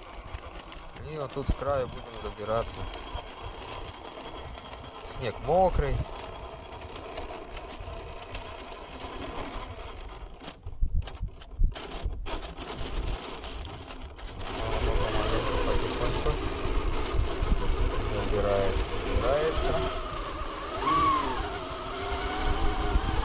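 A small electric motor whirs as a toy truck crawls.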